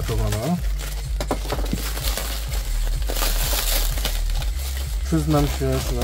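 Plastic wrapping crinkles and rustles as it is pulled back.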